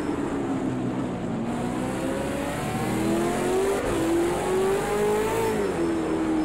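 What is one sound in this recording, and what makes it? A race car engine roars loudly, its pitch rising and falling as it shifts gears.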